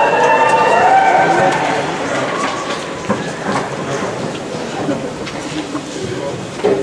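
A crowd talks and murmurs in an echoing hall.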